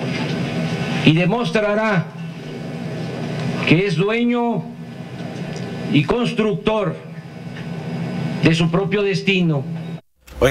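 A middle-aged man speaks slowly and deliberately into a microphone, with pauses between phrases.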